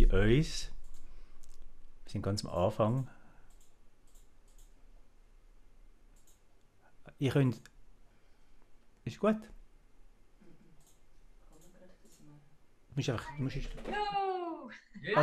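A man speaks calmly and close into a microphone, pausing between phrases.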